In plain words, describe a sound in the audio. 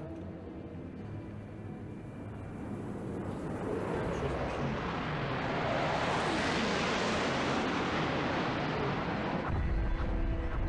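Missiles roar as they streak across the sky.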